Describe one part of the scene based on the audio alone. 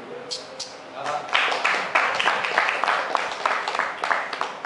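A man chants rhythmic syllables loudly and quickly nearby.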